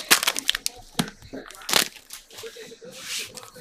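Plastic card packs rustle and clack as hands shuffle them.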